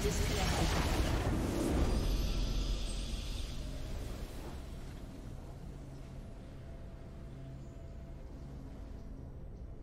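A triumphant fanfare swells and then fades.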